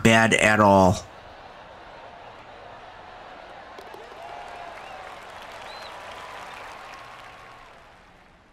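A crowd cheers and applauds in the distance.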